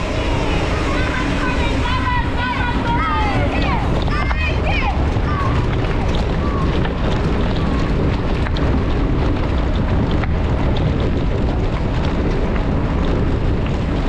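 Bicycle tyres rumble and rattle over a rough path.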